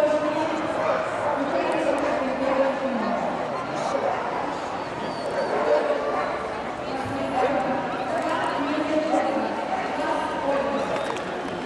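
Many men and women chatter in a large echoing hall.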